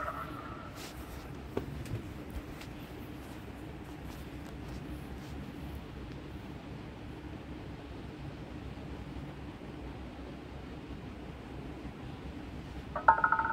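A roulette ball rolls around a spinning wheel.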